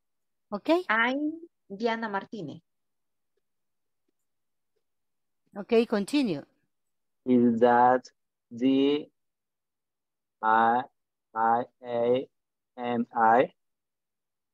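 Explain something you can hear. A woman speaks slowly and clearly over an online call, pausing between phrases.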